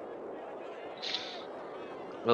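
A referee's whistle blows a short blast.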